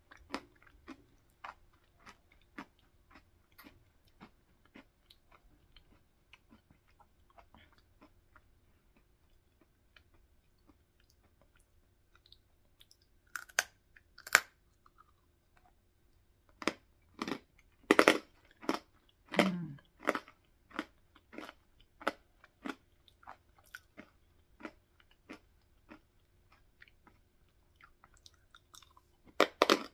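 A woman crunches and chews crisp food close to a microphone.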